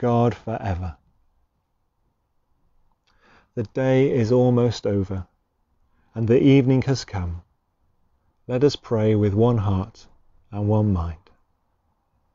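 A man speaks calmly into a clip-on microphone, close by, with pauses.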